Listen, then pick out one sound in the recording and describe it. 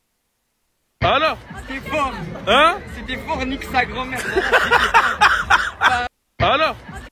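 A young man talks and laughs with animation close to a phone's microphone.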